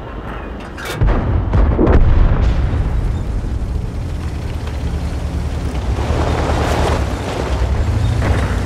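A tank engine rumbles deeply and steadily.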